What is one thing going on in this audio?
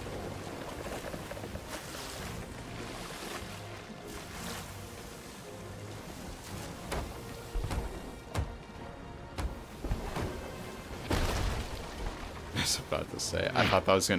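Ocean waves roll and crash against a wooden ship.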